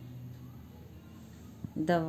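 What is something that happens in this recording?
A card is laid softly onto cloth.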